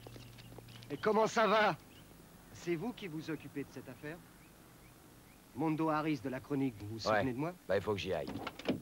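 Two men talk with each other up close.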